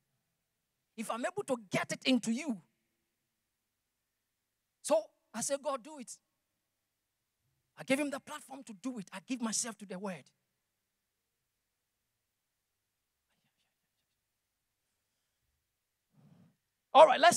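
A man speaks with animation into a microphone, heard through loudspeakers in a large hall.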